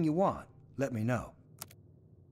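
A man speaks calmly and briefly in a friendly tone.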